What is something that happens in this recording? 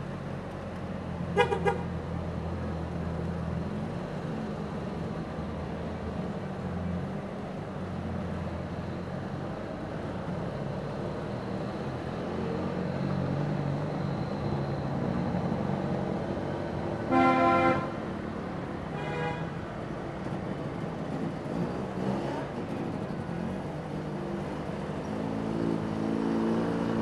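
Small car engines putter and drone as a line of old cars drives slowly past.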